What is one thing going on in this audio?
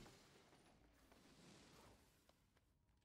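A creature bursts apart with a crackling shatter.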